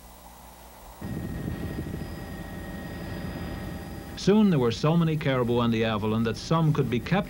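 A helicopter engine drones across open ground.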